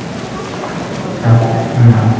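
A man speaks through a loudspeaker.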